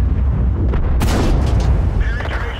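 A tank cannon fires with a loud bang.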